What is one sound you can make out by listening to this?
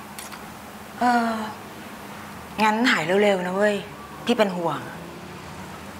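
Another young woman answers close by, calmly and firmly.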